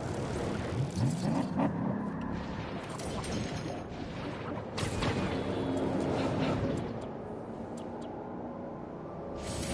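Wind rushes past during a fast fall through the air.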